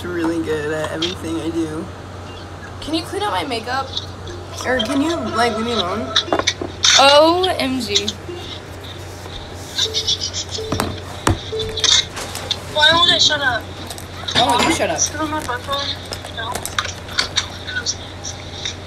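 Young women talk and laugh with animation close to a phone's microphone.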